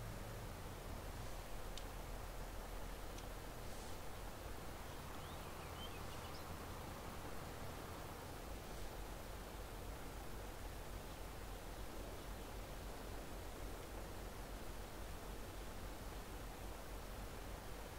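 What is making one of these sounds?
Grain pours steadily from an auger into a trailer.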